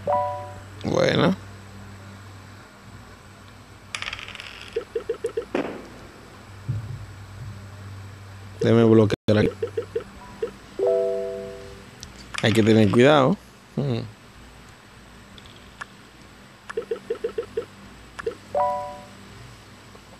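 A game plays short chimes.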